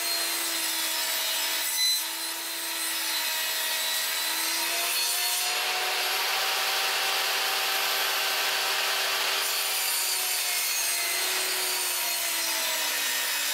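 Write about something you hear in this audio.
A table saw cuts through plywood with a rasp.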